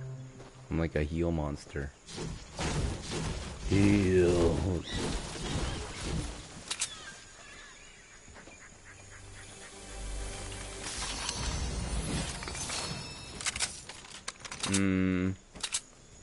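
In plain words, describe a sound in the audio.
A middle-aged man talks with animation into a close microphone.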